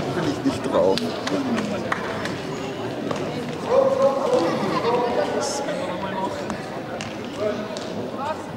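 A ball thuds on the floor.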